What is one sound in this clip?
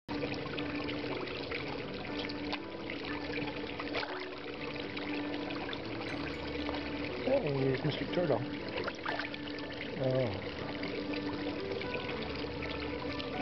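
Water splashes and laps as a hand stirs it.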